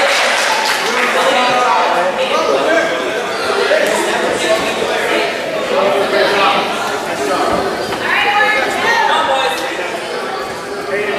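A ball thumps as children kick it.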